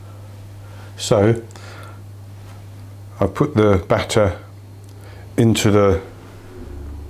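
An older man speaks calmly and close by in short bursts.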